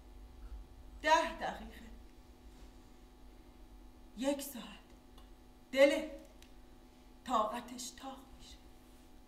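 A young woman speaks slowly in short phrases, with pauses.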